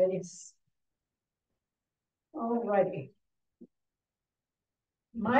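An elderly woman reads aloud calmly, with pauses.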